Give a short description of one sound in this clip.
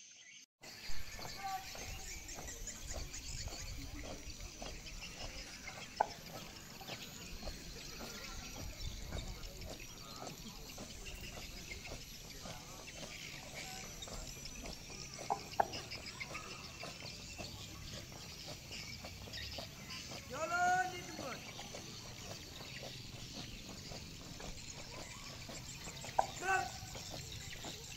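Footsteps of a large group march in step on grass.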